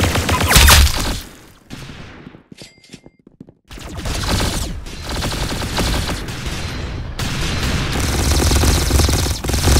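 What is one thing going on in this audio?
A handgun fires several sharp shots.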